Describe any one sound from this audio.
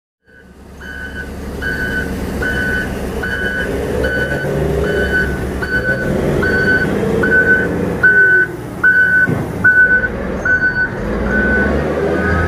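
A reversing alarm beeps over and over at an even pace.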